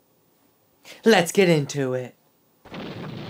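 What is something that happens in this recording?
A young man speaks briefly close to a microphone.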